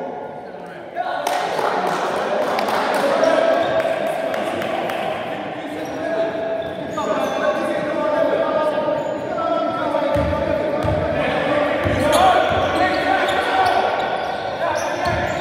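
Men shout and call out across an echoing hall.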